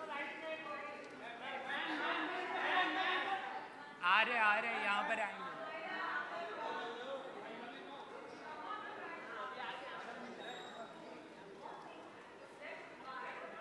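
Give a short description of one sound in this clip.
A crowd of photographers calls out and chatters nearby.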